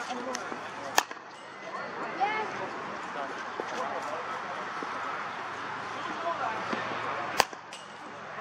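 A cricket bat cracks sharply against a ball.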